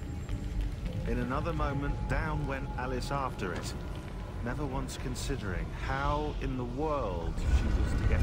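A young man speaks quietly and with tension.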